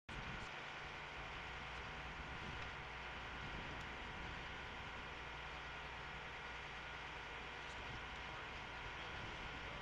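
A river rushes steadily over rocks.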